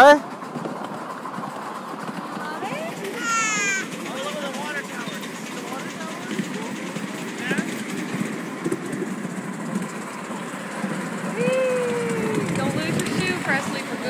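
A small train rumbles steadily along its tracks.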